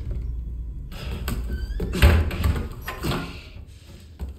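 A wooden door creaks open and bangs shut.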